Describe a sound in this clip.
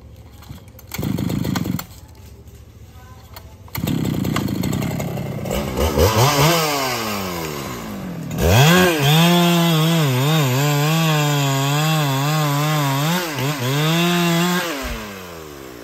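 A chainsaw engine starts, revs up and down, and then roars steadily.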